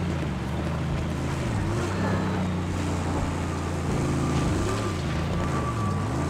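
A car engine roars steadily, its pitch rising and falling as it shifts gears.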